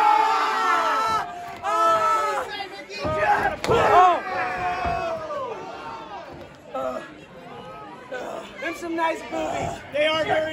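A crowd of people shouts and cheers in an echoing hall.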